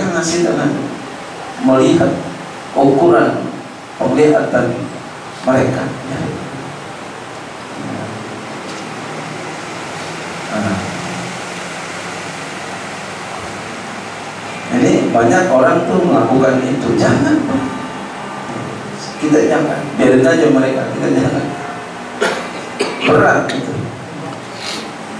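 A man preaches with animation into a head microphone over loudspeakers, in an echoing room.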